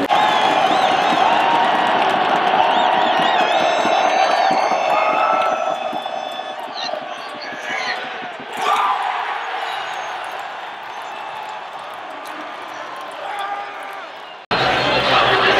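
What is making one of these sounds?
A huge stadium crowd roars and cheers loudly, then fades.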